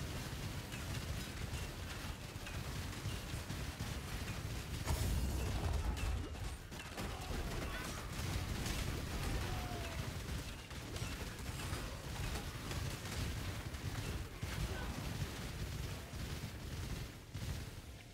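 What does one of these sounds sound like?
Magic spells crackle and burst in rapid succession.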